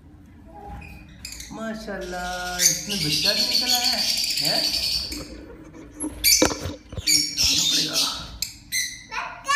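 A baby bird chirps faintly.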